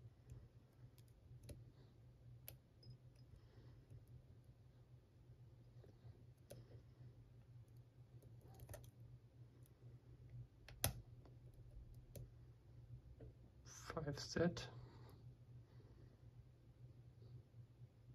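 Small metal tools click and scrape inside a lock.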